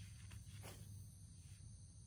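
A fishing rod swishes as a line is cast.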